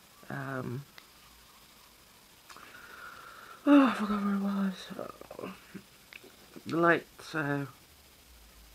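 A man makes drawn-out vocal sounds very close by.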